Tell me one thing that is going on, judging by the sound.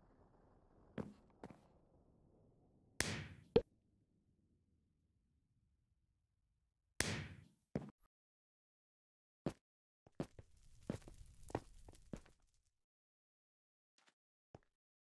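Short digital clicks and blips sound from a game menu.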